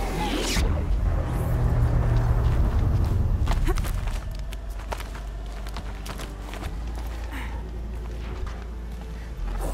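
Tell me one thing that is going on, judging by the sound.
Wind howls steadily and roars low.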